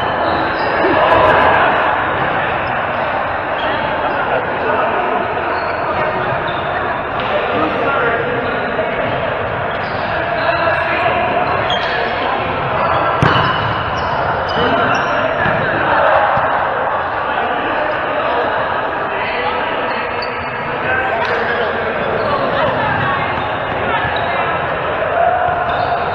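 Adult men and women chat and call out across a large echoing hall.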